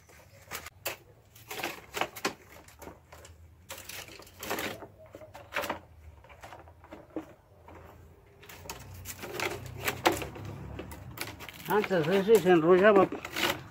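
Dry cane strips rustle and clack against each other as they are woven.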